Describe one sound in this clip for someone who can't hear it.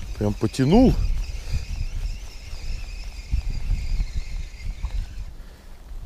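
A fishing reel clicks and whirs as its handle is turned.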